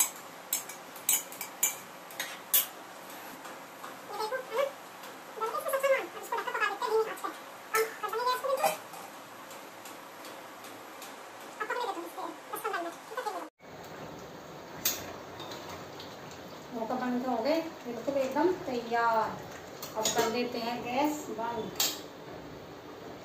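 Metal lids and pans clink and clatter.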